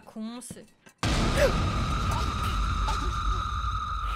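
A young woman gasps in fright.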